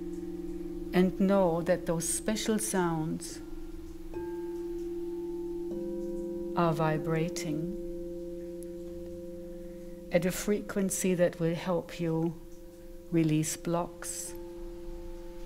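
A woman sings in wavering phrases into a microphone.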